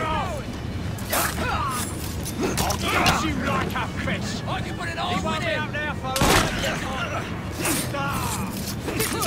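Fists thud and bodies crash in a brawl.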